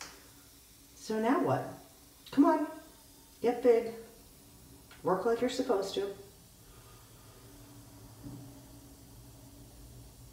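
A bath bomb fizzes softly in water.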